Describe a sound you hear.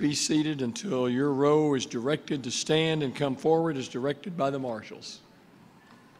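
An elderly man speaks calmly through a microphone in a large hall.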